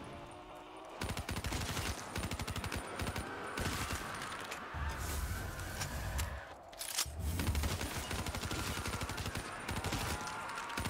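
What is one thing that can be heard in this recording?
Rapid gunfire rattles steadily.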